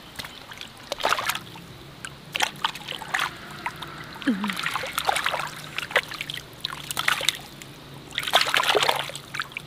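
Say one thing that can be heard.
Fish flap and splash in shallow water in a net basket.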